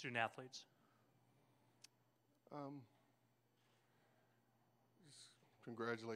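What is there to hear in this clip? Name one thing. A middle-aged man speaks slowly and haltingly into a microphone, with long pauses.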